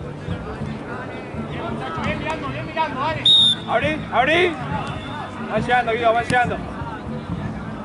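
Young men shout and call to each other across an open field outdoors.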